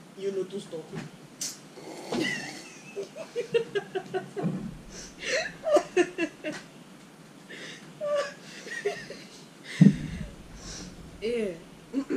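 Two young women laugh loudly close by.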